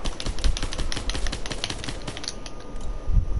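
A gun fires in a rapid burst.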